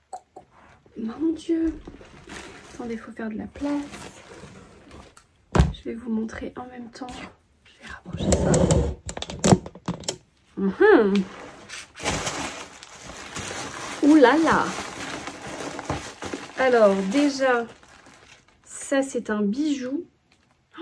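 A young woman talks with animation close by.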